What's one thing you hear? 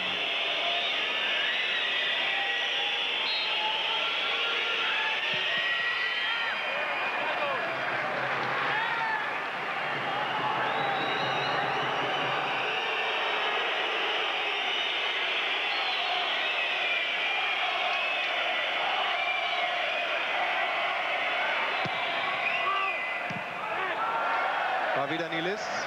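Fans in a stadium crowd whistle shrilly.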